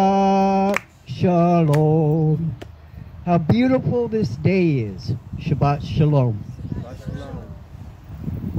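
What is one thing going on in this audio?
A man chants in a melodic voice outdoors, close by.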